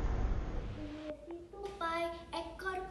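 A young girl sings loudly nearby.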